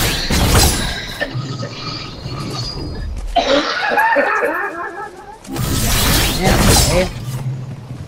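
A blade swishes through the air with a loud whoosh.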